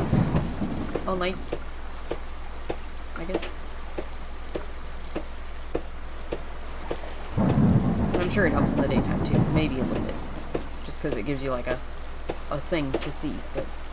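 Footsteps clank steadily on metal stairs.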